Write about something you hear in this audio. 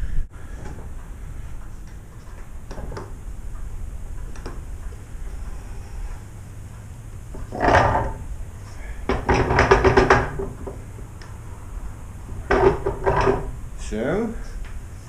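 A wooden screw press creaks and knocks as its handle is turned.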